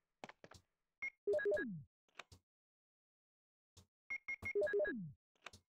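A short electronic chime sounds from a menu.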